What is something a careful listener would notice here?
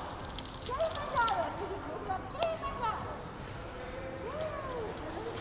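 Pebbles clatter and click under small hands.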